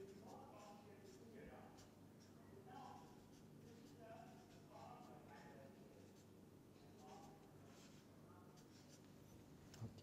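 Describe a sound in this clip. A felt marker squeaks and scratches across paper.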